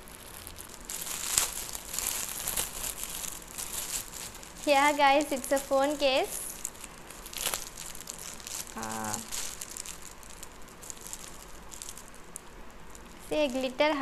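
Foil wrapping paper crinkles and rustles.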